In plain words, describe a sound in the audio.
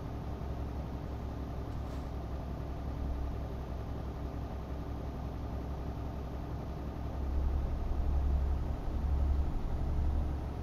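A truck engine drones steadily, growing louder and deeper from about seven seconds on.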